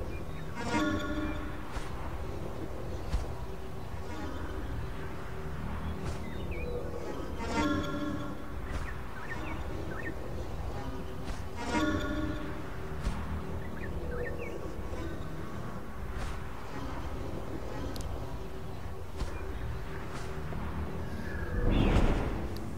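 A small drone whirs steadily as it flies.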